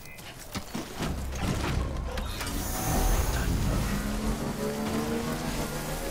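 A motorbike engine starts, then revs and hums steadily as the bike rides off.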